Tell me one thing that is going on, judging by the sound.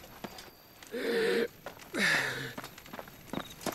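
A young man groans in pain.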